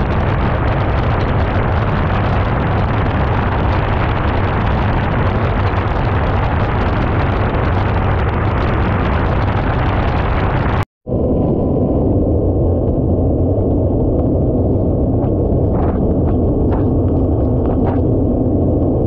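A jet ski engine drones steadily.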